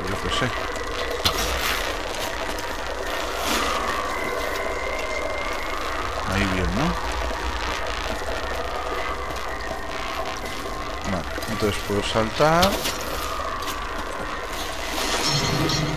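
Water rushes and churns steadily.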